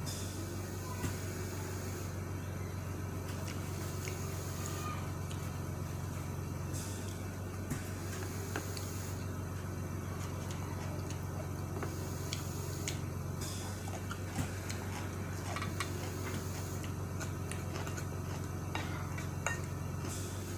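A fork clicks against a plate.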